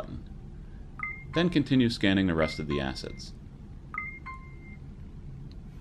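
A phone beeps briefly as it scans.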